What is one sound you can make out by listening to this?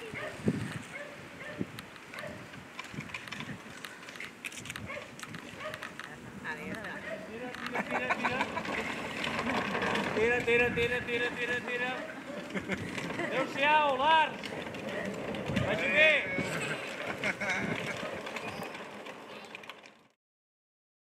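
Plastic wheels of a toy tractor rumble on a road.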